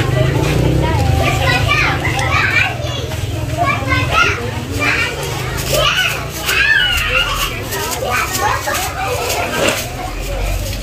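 Meat sizzles and crackles on a charcoal grill.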